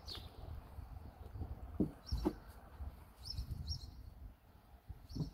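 A puppy chews and tugs at a blanket with soft rustling.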